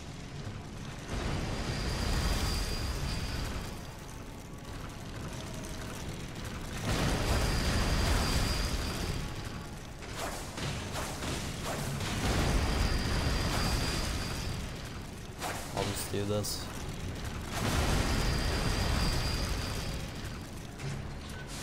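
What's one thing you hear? Heavy swinging blades rush past with a loud, roaring whoosh, again and again.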